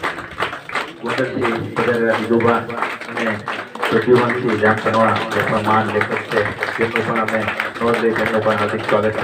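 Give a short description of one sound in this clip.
A man speaks through a microphone over a loudspeaker.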